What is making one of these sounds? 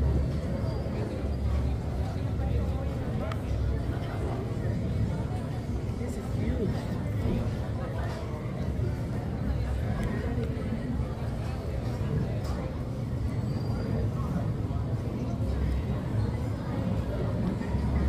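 Plastic forks scrape and tap on plates.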